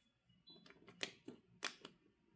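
A plastic button clicks as a finger presses it.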